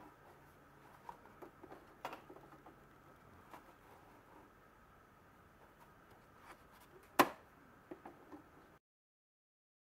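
Fabric rustles and slides under fingers.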